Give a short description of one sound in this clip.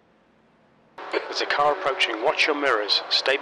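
A race car engine roars past.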